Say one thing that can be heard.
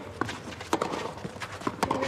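A tennis racket strikes a ball outdoors.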